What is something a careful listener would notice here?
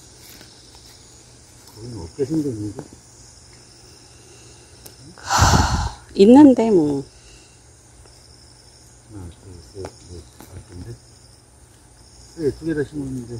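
Soil scrapes and crumbles as a man digs with a small hand tool.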